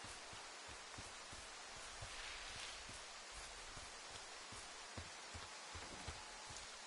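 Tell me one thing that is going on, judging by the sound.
A light breeze rustles through trees outdoors.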